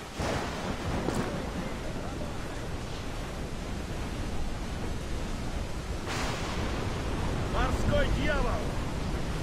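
Waves crash against a wooden ship's hull.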